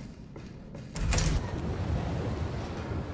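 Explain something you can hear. A heavy metal door scrapes open.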